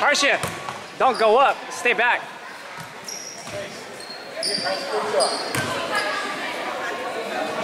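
A crowd of adults and children chatters in the background.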